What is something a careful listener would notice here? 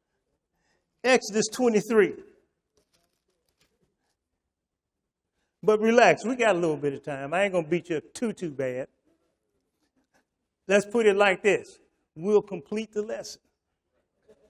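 An older man speaks with animation through a microphone, in short bursts with pauses.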